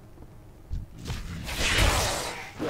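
A sword swings and slashes.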